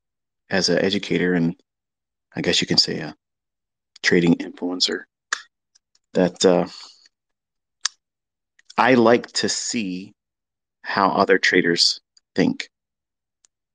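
A man speaks close to a microphone in short phrases with pauses.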